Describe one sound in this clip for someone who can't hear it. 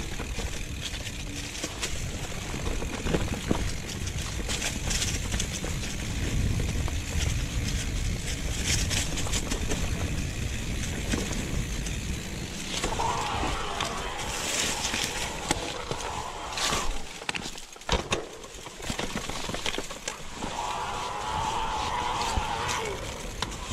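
Wind rushes past a moving bicycle.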